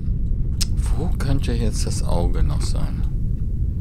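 A young man speaks briefly into a microphone.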